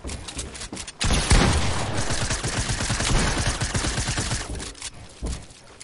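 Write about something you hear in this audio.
Rapid gunfire crackles loudly.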